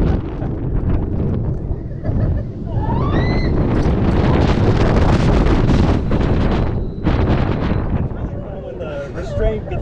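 Wind roars loudly past a moving roller coaster.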